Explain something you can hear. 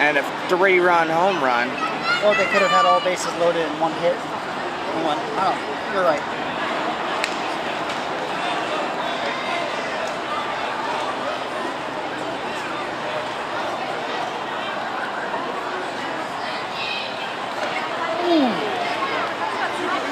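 A crowd murmurs and chatters throughout an outdoor stadium.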